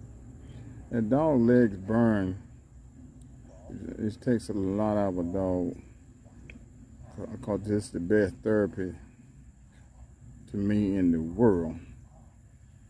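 A man speaks firm commands to a dog nearby.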